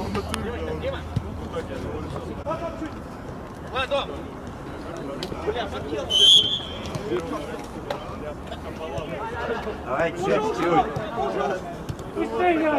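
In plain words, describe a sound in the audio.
Young men shout and call out to each other across an open outdoor pitch.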